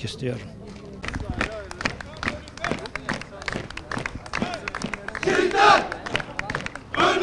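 Footsteps of a marching group tap rhythmically on pavement outdoors.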